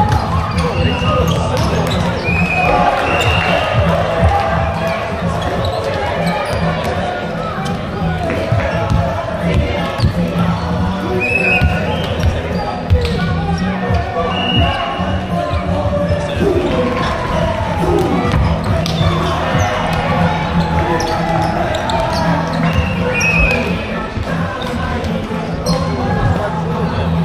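Many young people chatter and shout throughout a large echoing hall.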